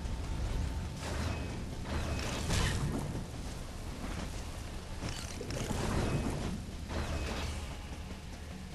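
Blasts and explosions burst in short rapid bursts.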